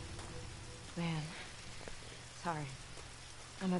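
A young man sighs.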